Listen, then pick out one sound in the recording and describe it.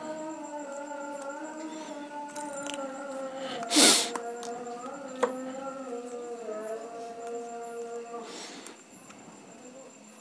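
Metal tweezers click against a plastic phone frame as parts are prised loose.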